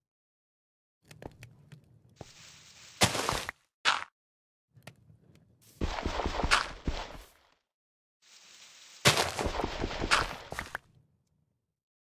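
Dirt crunches and breaks as it is dug in quick bursts.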